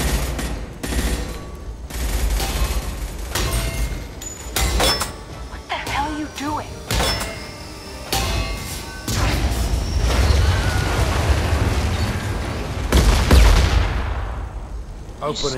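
Explosions boom and roar repeatedly.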